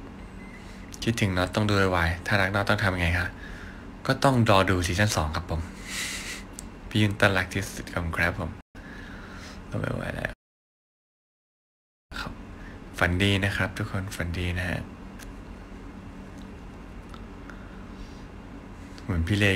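A young man speaks casually and close to a phone microphone.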